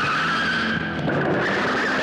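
A motorcycle engine rumbles.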